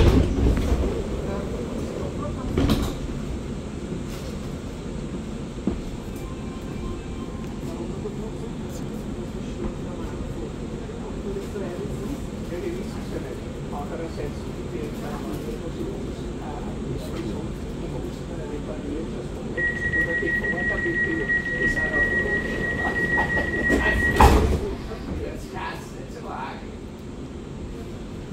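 A train idles with a steady low hum.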